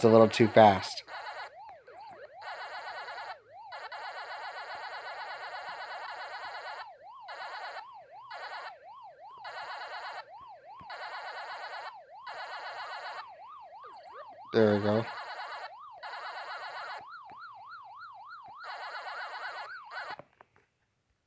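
Quick electronic chomping bleeps sound in bursts.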